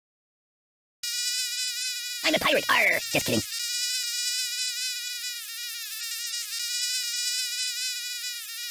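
Mosquitoes buzz in a high, steady whine.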